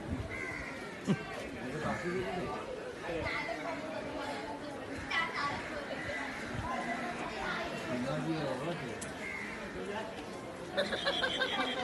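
Several men talk and call out in a street nearby.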